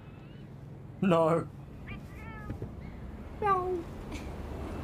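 A small creature squeaks in a high voice.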